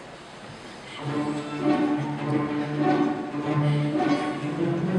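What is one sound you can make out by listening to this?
An orchestra plays.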